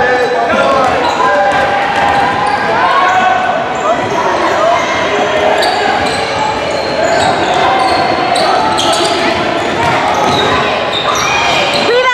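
Teenage girls call out to each other across an echoing gym.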